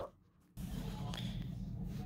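Plastic toy figures bump and scrape softly on a carpet.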